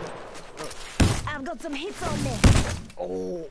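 A heavy weapon swings and strikes with loud sharp thuds.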